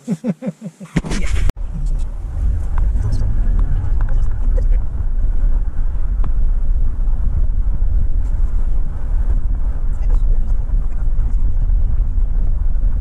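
A car engine and tyres rumble steadily on the road.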